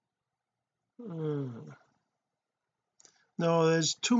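A middle-aged man speaks with animation into a microphone, close by.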